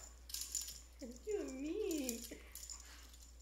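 A dog whines and howls with a rising and falling pitch.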